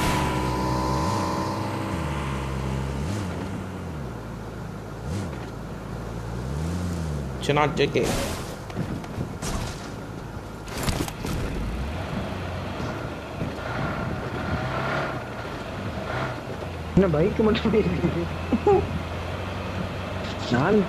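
A car engine revs as the car drives.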